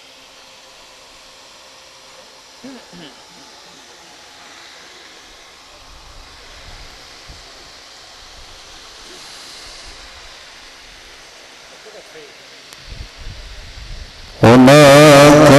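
A crowd of men murmurs quietly outdoors.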